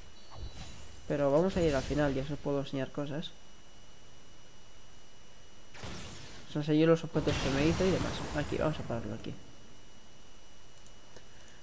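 Magic spells whoosh and clash in a video game fight.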